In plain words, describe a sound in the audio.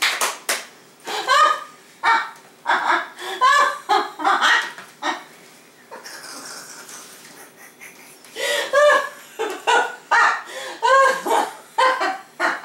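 A teenage boy laughs and talks with animation.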